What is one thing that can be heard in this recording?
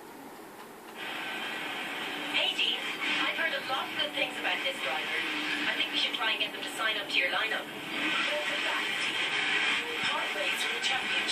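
A racing game's car engine revs through a television speaker.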